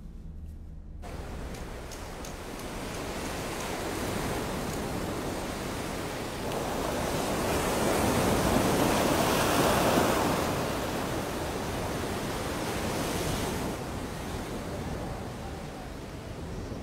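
Waves roll and wash onto a sandy shore.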